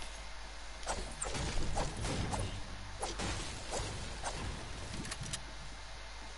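A pickaxe strikes and smashes wooden furniture.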